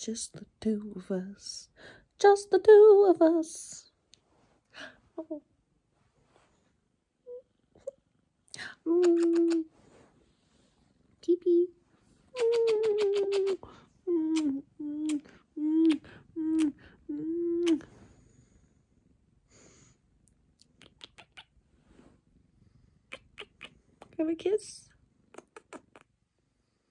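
A young woman talks softly and playfully close by.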